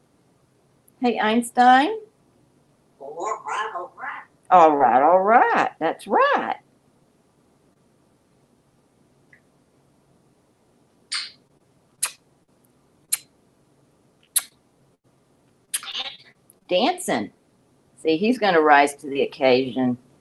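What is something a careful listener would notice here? A parrot chatters and imitates speech close by.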